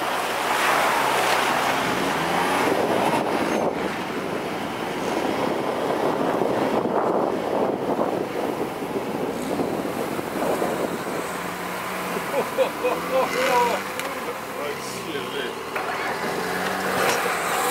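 Tall grass swishes and brushes against a moving vehicle.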